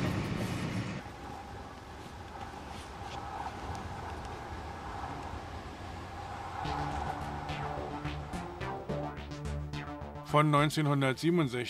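A tram approaches from a distance, humming and growing louder.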